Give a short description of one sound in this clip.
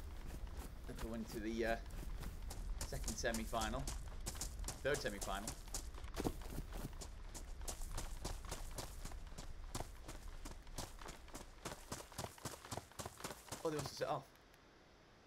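Footsteps swish quickly through grass.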